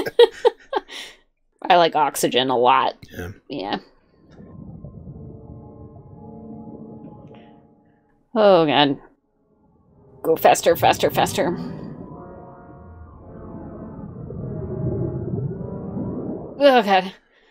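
A young woman talks and laughs with animation into a microphone.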